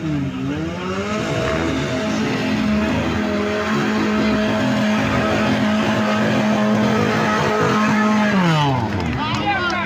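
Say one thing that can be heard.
A nearby engine strains loudly at high steady revs, then drops away.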